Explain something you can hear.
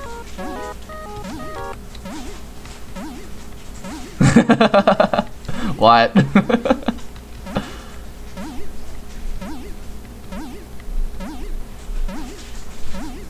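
Short electronic blips chirp rapidly as game text types out.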